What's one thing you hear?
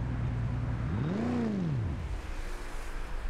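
A car engine revs up quickly and drops back.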